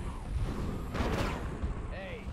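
Explosions boom in a game.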